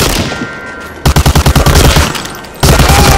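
A submachine gun fires a rapid burst of shots.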